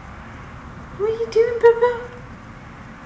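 A cat meows nearby.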